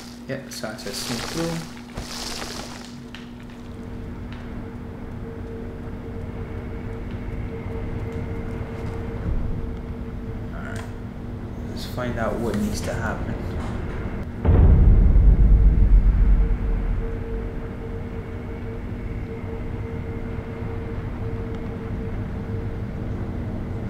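A low steady hum drones.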